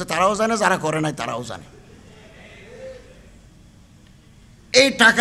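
An elderly man speaks forcefully into a microphone, heard through loudspeakers.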